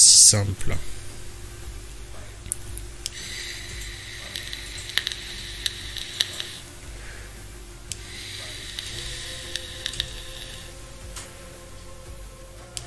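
A young man talks quietly into a close microphone.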